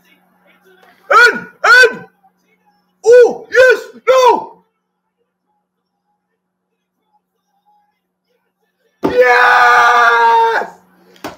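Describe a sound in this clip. A young man shouts loudly close by.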